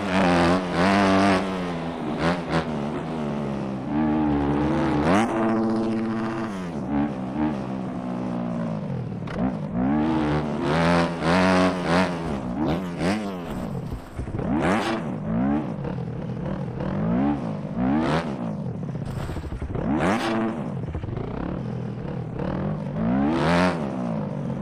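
A motorbike engine revs up and down constantly, rising and falling in pitch.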